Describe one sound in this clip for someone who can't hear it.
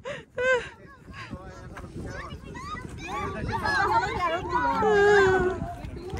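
Children shout and chatter excitedly nearby, outdoors.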